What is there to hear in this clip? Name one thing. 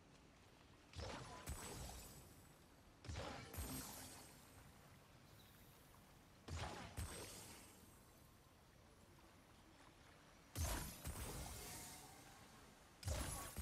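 Magical bursts whoosh and crackle again and again.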